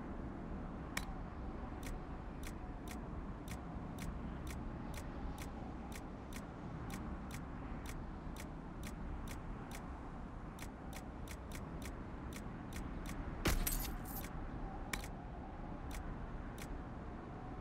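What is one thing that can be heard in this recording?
A game menu gives soft ticks as its cursor steps through a list.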